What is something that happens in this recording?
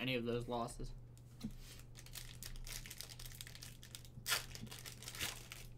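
A plastic wrapper crinkles and tears as hands open a pack.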